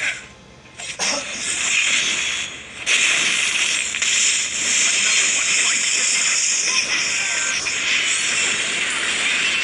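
Video game battle effects crackle and blast in quick bursts.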